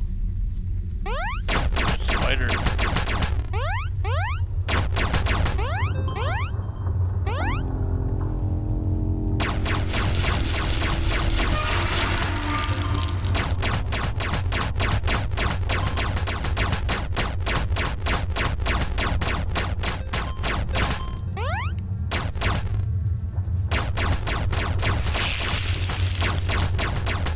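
Rapid game gunshot effects crackle in quick bursts.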